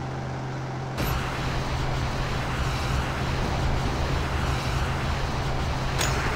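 A vehicle engine roars loudly as it speeds up.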